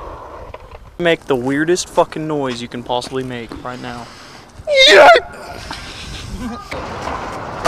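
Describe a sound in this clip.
A young man talks and laughs close up.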